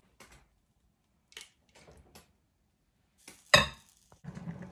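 A stone pestle pounds soft eggplant in a stone mortar.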